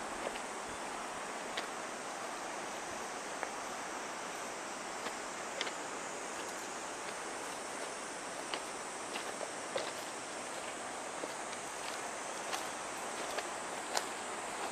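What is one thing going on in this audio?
Footsteps crunch slowly on gravel.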